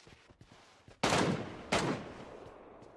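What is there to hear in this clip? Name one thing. Gunshots ring out loudly and echo away.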